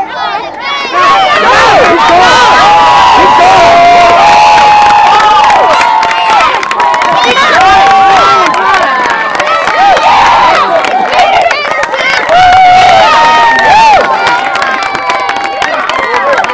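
A crowd of spectators cheers and shouts loudly, outdoors.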